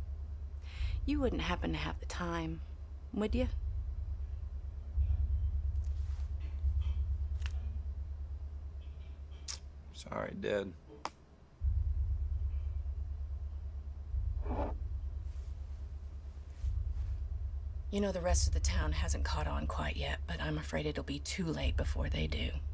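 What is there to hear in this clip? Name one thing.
A woman speaks calmly and quietly, close by.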